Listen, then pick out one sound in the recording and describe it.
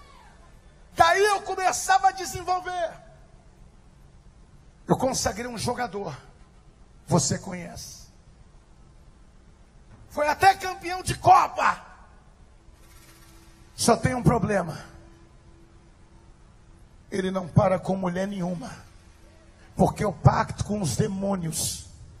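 A man preaches forcefully into a microphone in bursts, with echo in a large hall.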